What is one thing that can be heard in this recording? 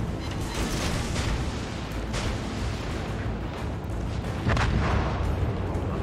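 Heavy guns fire in loud booming blasts.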